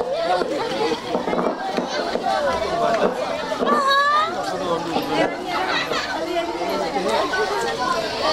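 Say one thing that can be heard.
A crowd of men and women talk and call out nearby.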